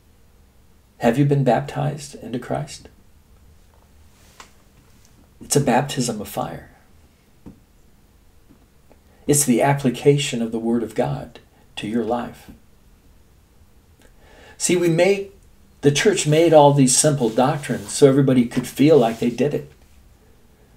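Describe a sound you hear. An elderly man speaks calmly and close to a microphone, in short bursts with pauses.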